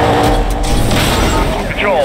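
A car smashes through a roadblock with a loud crash.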